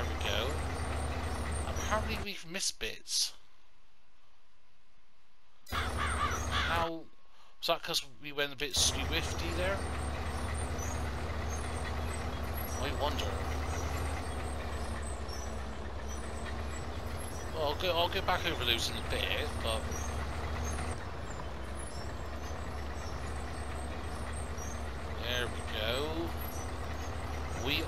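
A tractor engine rumbles steadily at a low pitch.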